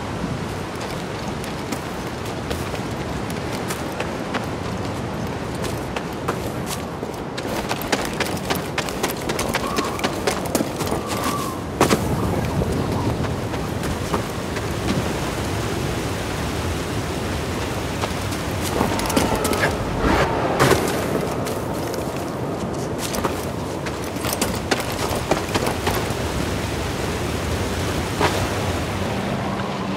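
Footsteps scrape over rock and grass.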